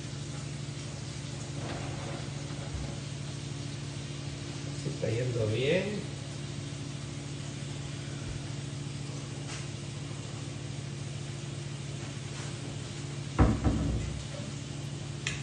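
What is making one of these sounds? Utensils clink against dishes.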